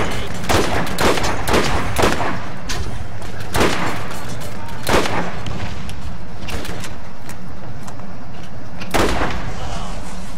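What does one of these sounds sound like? Gunshots fire in sharp bursts.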